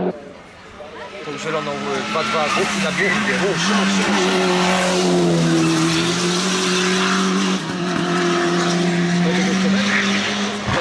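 A racing car engine roars and revs hard as the car speeds past close by.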